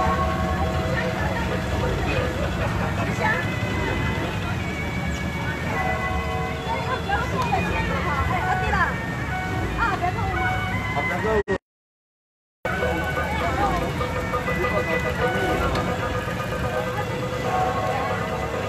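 A crowd of men and women chatters outdoors at a distance.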